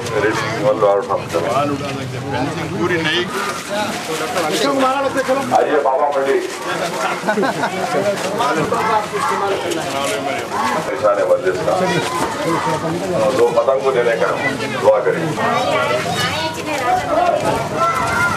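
A crowd of men chatter all around.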